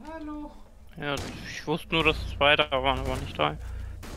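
Gunshots ring out in quick bursts.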